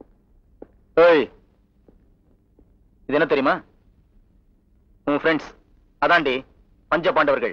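A man speaks loudly in short, forceful bursts.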